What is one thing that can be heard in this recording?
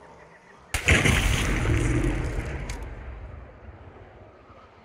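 A rifle fires a single loud shot that echoes and rolls away slowly.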